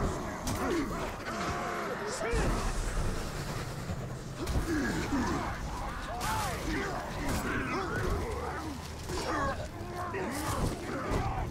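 Swords clash and slash with sharp metallic hits.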